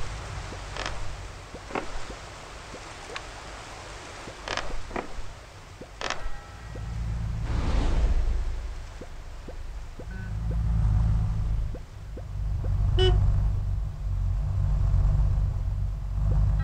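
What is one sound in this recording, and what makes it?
Short game blips sound with each hop of a small character.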